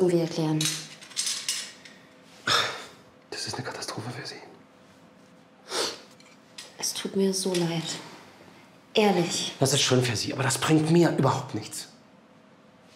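A man speaks nearby in a calm, low voice.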